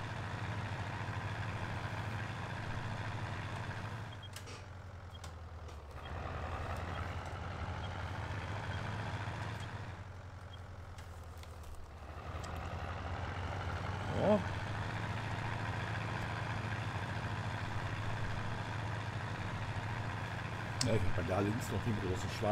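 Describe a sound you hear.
A tractor engine rumbles steadily, dipping in loudness now and then.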